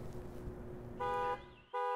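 A handheld device beeps in short electronic tones.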